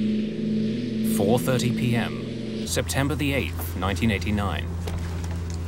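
A middle-aged man speaks tensely.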